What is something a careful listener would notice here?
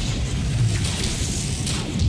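A crackling electric blast zaps.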